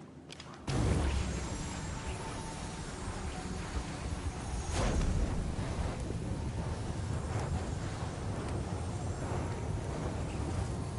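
Fiery magic crackles and whooshes.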